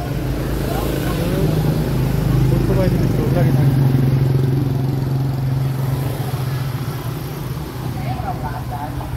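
Motorbike engines hum as they pass close by on a street.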